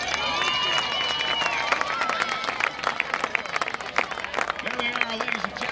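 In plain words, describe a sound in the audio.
Young women cheer and shout together.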